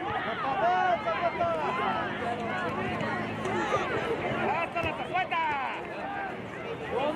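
Many young players and spectators shout and chatter all around outdoors.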